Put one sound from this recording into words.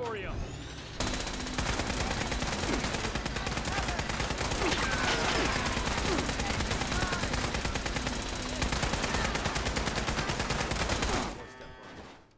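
An automatic gun fires rapidly and without pause.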